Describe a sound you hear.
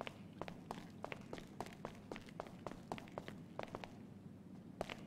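Quick footsteps tap across a hard floor.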